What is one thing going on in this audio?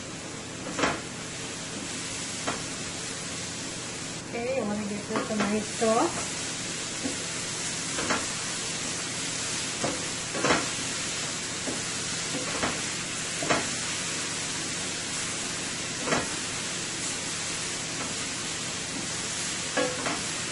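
Vegetables sizzle steadily in a hot pan.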